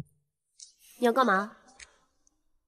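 A young woman shouts sharply.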